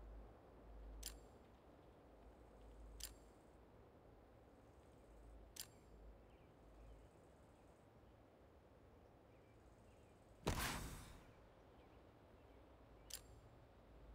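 Short interface clicks sound now and then.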